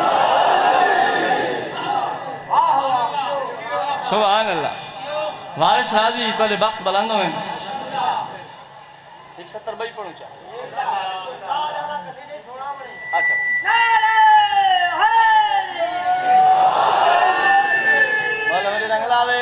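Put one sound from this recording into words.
A young man recites and chants loudly into a microphone, heard through loudspeakers in an echoing hall.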